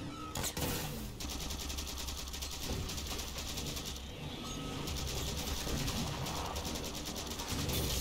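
A rapid-fire energy gun shoots in fast bursts.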